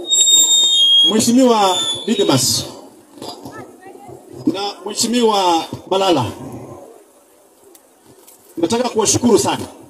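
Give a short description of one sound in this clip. A man speaks with animation to a crowd.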